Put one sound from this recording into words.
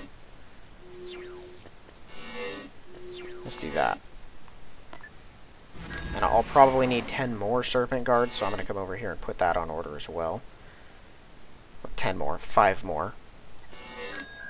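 Short electronic game tones chirp and sweep downward.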